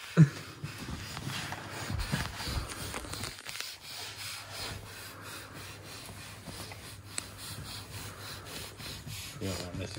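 A young woman makes muffled sounds through a gag.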